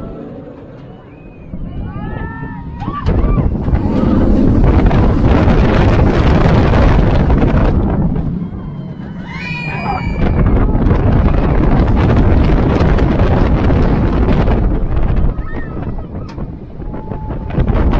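A roller coaster train rumbles and rattles along its steel track.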